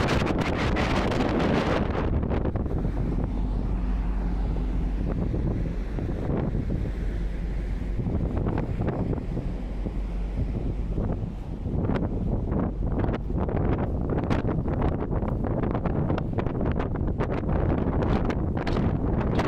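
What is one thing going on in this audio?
Strong wind blows and buffets outdoors throughout.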